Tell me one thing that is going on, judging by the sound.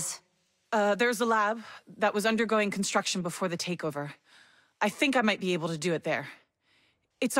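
A middle-aged woman speaks calmly.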